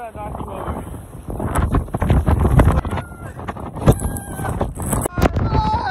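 A young man shouts and laughs loudly into the wind.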